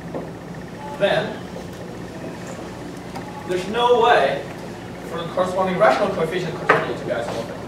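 A man speaks calmly, heard in a room with some echo.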